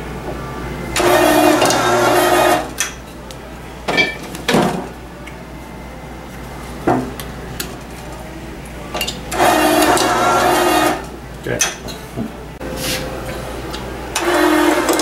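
A capping machine whirs loudly as it screws a cap onto a bottle.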